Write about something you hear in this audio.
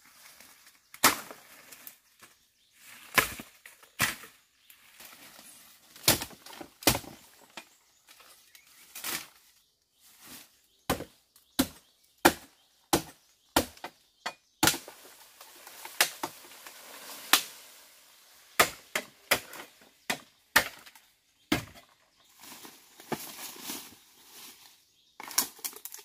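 Plant stems snap sharply, again and again.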